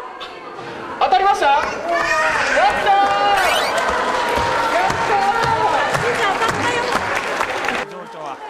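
A young girl wails and sobs.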